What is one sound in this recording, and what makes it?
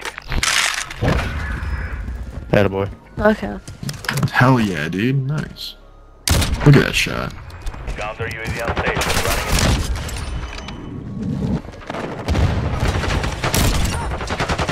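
A rifle fires loud single shots.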